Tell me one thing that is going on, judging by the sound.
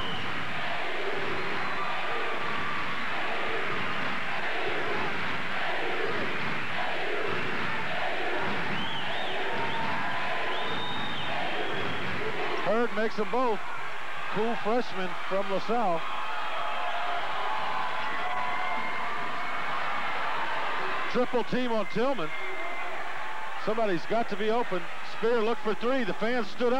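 A large crowd cheers and roars in an echoing hall.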